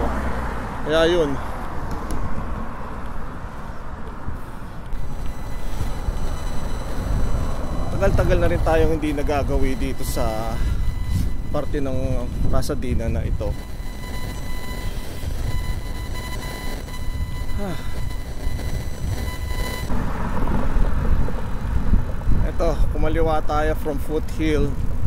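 Wind rumbles and buffets steadily outdoors while moving along a street.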